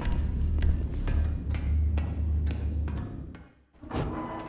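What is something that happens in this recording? Footsteps clang on metal ladder rungs.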